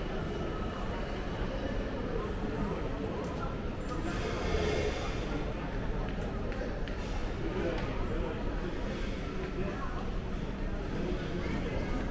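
Suitcase wheels roll over a hard floor.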